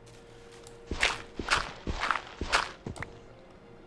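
Dirt crunches with quick digging strikes.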